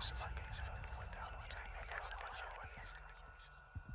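A young woman speaks into a microphone.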